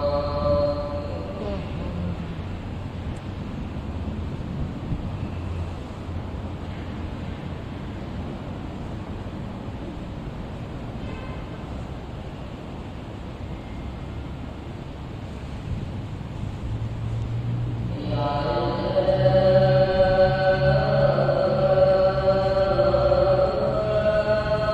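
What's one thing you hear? A man chants in a steady, drawn-out voice through a loudspeaker in a large echoing hall.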